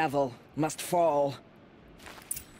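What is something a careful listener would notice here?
A woman speaks calmly and seriously.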